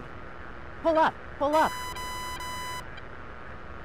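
A cockpit warning tone sounds in short falling chirps, then as a steady beep.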